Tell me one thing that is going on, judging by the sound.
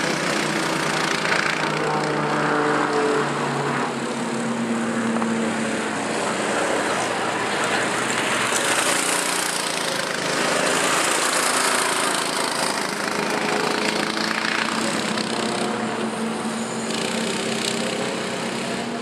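Go-kart engines drone and whine as karts race around a track.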